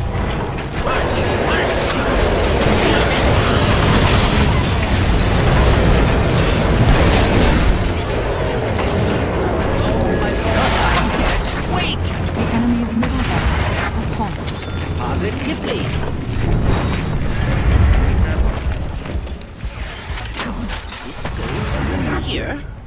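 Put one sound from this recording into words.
Magic blasts and clashing weapons ring out in a busy battle.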